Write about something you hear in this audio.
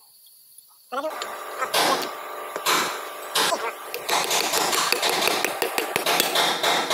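A hammer bangs on a metal shaft repeatedly.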